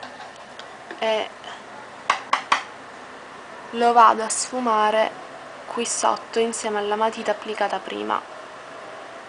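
A young woman speaks calmly, close to the microphone.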